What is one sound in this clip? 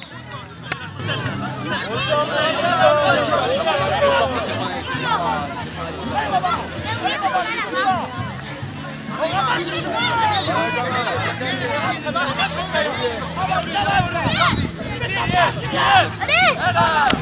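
Young children shout and squeal excitedly nearby, outdoors.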